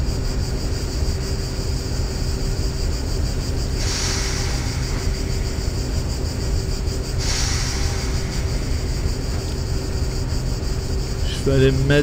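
A train engine hums and rumbles steadily from inside the cab.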